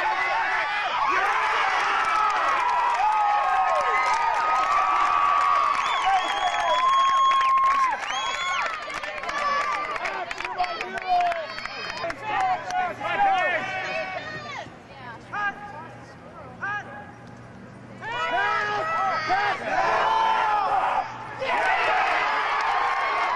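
A crowd of young men and women cheers and shouts outdoors.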